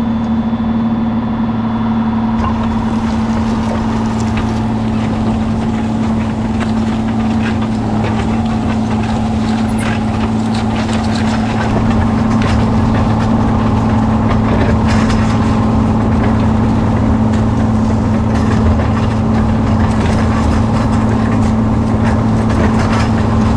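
A tractor engine drones steadily close by.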